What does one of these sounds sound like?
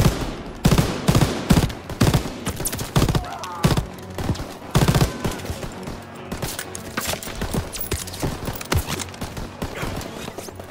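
Distant gunfire and explosions crackle in the background.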